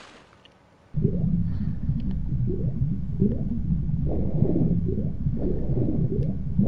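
Water burbles and bubbles steadily underwater.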